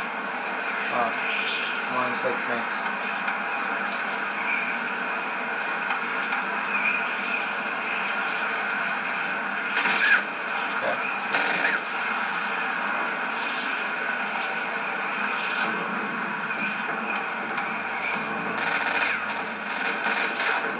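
Video game gunfire plays through a television speaker.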